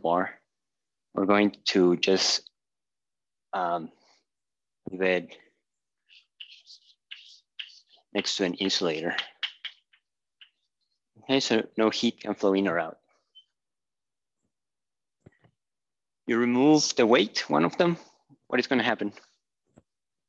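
A man speaks calmly, explaining at length.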